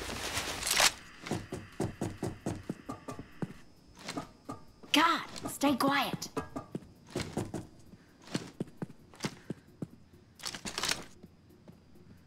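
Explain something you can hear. Footsteps tap quickly across a hard floor.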